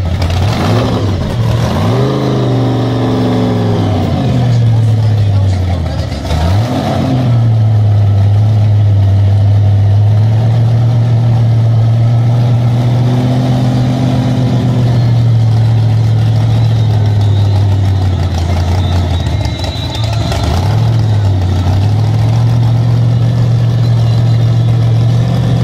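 A powerful car engine idles with a loud, lumpy rumble.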